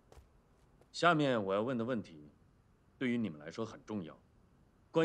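A man speaks slowly and calmly up close.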